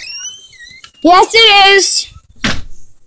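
A young boy squeals loudly close by.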